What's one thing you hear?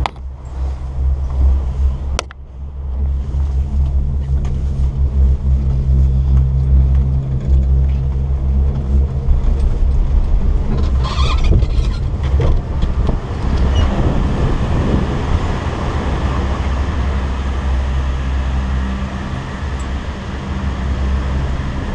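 Strong wind roars and buffets loudly outdoors.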